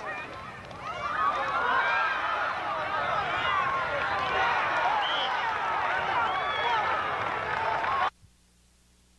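A crowd cheers and shouts outdoors.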